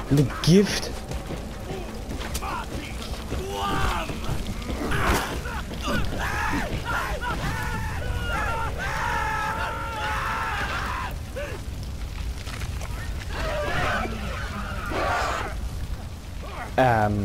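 A torch fire crackles and roars close by.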